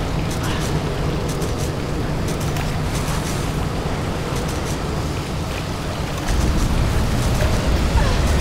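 A woman's feet splash through deep water.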